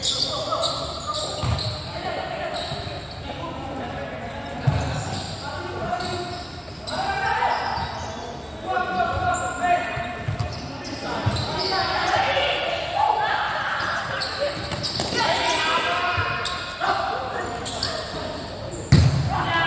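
Children shout and call out in a large echoing hall.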